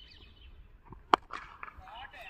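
A cricket bat cracks sharply against a ball.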